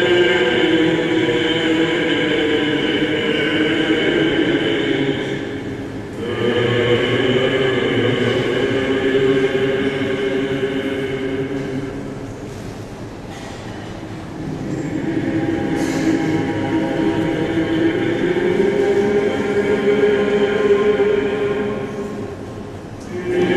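A choir of men chants together in a large echoing hall.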